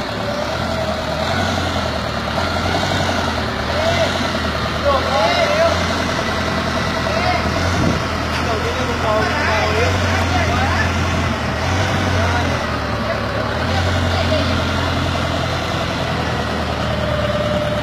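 A forklift engine rumbles steadily nearby.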